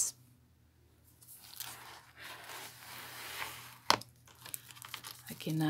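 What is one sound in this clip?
Stiff paper rustles and scrapes as pages are handled.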